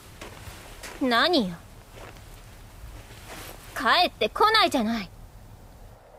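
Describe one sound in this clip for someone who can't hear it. A young woman speaks in short, lively bursts.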